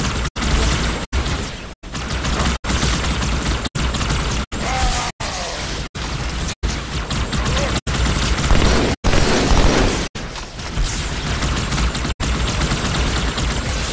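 Energy weapons fire with sharp zaps.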